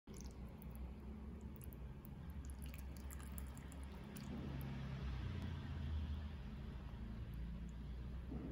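Soup bubbles and simmers gently in a pot.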